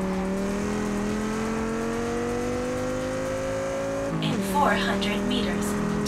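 A car engine revs steadily higher as the car speeds up.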